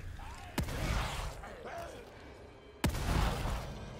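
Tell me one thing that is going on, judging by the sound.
A pistol fires loud, sharp shots.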